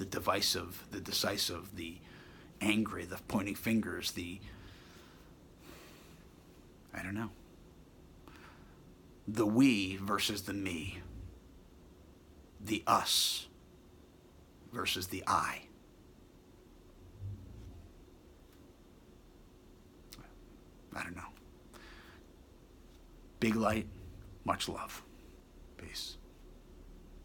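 A man speaks calmly and close to the microphone, in short phrases with pauses.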